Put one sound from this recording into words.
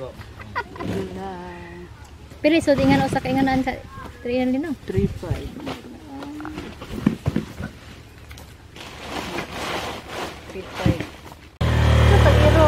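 Men talk with animation close by.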